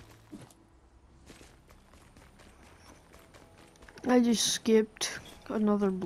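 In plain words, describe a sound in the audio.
Footsteps patter quickly on grass.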